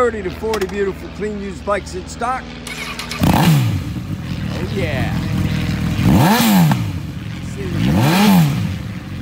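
A motorcycle engine idles with a low rumble.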